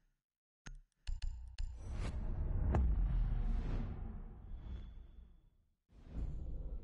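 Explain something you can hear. A deep rumbling whoosh swells and fades.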